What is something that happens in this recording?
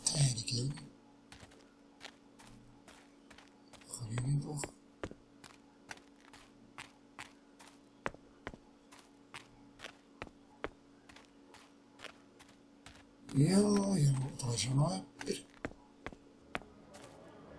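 Footsteps tap steadily on stone paving.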